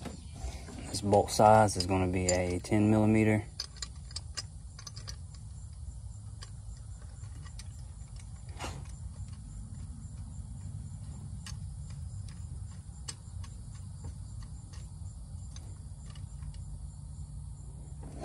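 A tool clicks and scrapes against metal engine parts.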